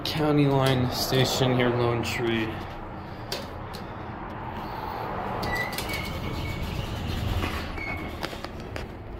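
Elevator buttons click and beep as they are pressed.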